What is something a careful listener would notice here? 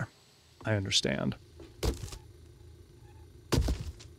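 A cardboard box rustles open.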